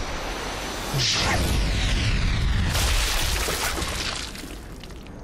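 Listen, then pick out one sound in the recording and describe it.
An explosion booms and roars with fire.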